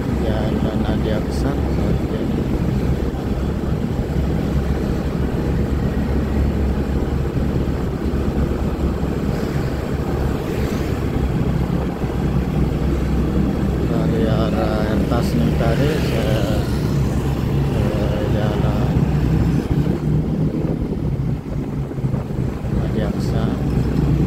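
Traffic rumbles steadily nearby.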